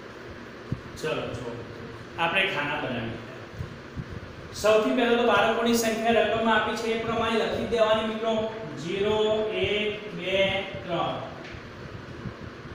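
A man speaks clearly and calmly, close by.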